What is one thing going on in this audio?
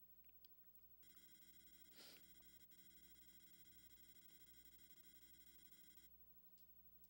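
Electronic beeps chime as text types out.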